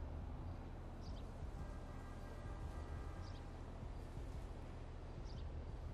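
A mobile phone chirps at regular intervals.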